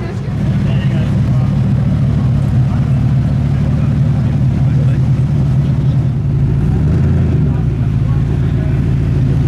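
A sports car engine idles with a deep, loud rumble close by.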